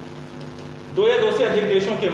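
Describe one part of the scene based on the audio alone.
A young man speaks clearly into a nearby microphone.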